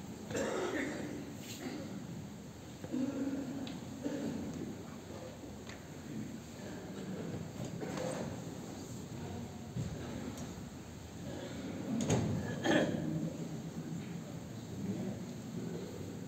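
Many people shuffle and rustle their clothes as they bow and kneel in a large echoing hall.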